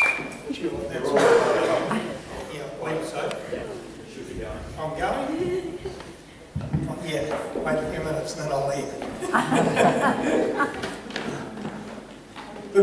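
An older man speaks calmly through a microphone and loudspeakers.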